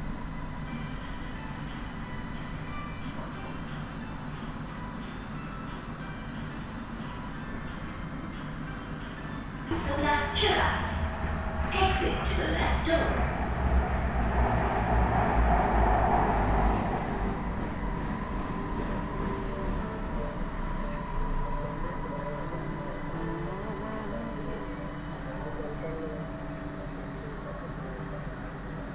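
A train hums and rumbles steadily on the move.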